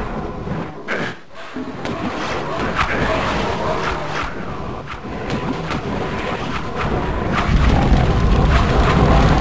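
Magic weapons fire in repeated sharp blasts.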